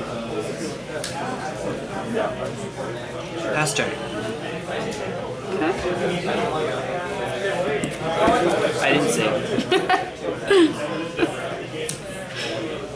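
Cards tap softly onto a play mat.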